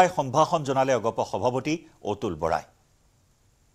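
A man speaks clearly into a microphone, reading out news with animation.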